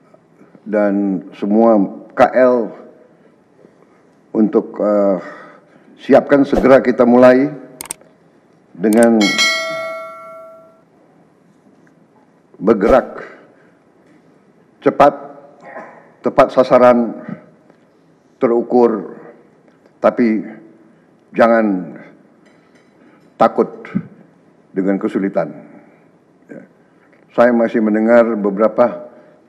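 An older man speaks firmly into a microphone, in short phrases with pauses.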